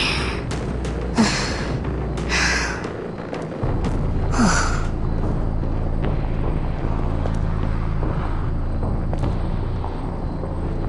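Footsteps tap lightly on a stone street.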